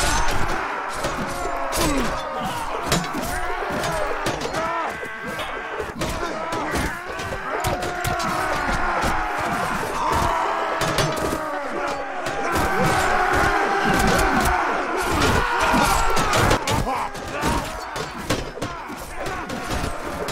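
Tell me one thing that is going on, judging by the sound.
Many soldiers shout and yell in battle.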